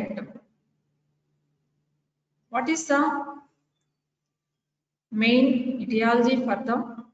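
A woman speaks calmly through a microphone on an online call.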